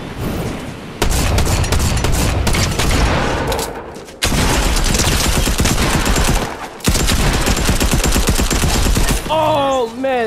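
Guns fire in rapid bursts, loud and close.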